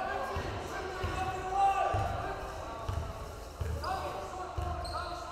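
A crowd murmurs in the echoing hall.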